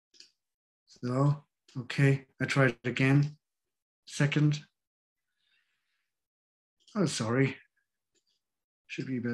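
A middle-aged man speaks calmly in short bursts over an online call.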